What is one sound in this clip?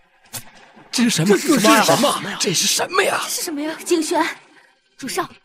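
A middle-aged man speaks in a startled, questioning voice.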